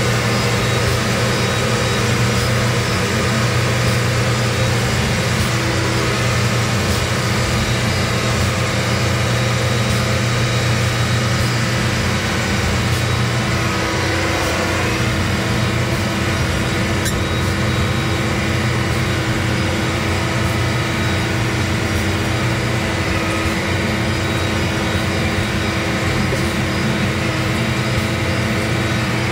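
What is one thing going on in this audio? A drilling rig's diesel engine hums, heard from inside the cab.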